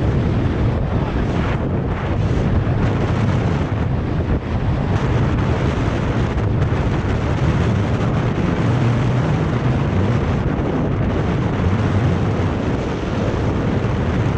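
Tyres hum steadily on asphalt.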